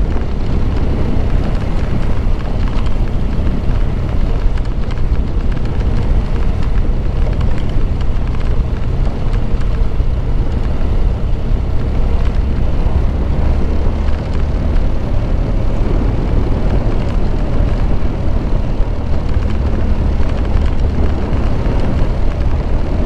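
Wind rushes loudly past, outdoors.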